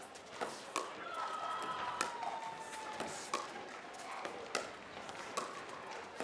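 Players' shoes squeak on the court.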